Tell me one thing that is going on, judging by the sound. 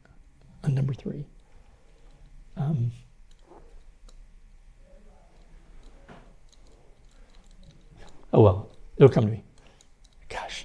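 An elderly man speaks calmly in short phrases with long pauses.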